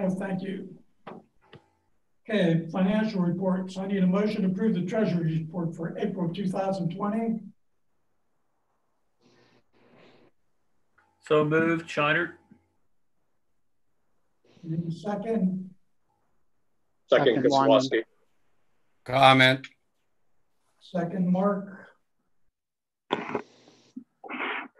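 A middle-aged man speaks calmly over an online call, in short bursts with pauses.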